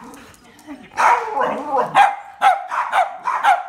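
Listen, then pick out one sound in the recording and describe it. A second dog yaps in higher bursts.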